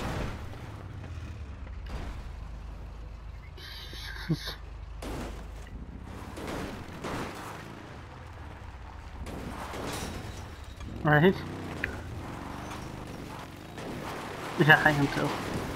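A vehicle crashes and tumbles with heavy metallic thuds.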